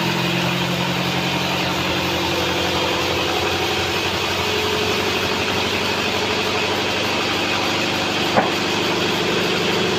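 A band saw hums and whines steadily as it cuts through a log.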